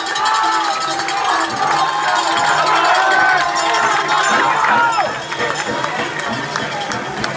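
A crowd claps and rattles noisemakers.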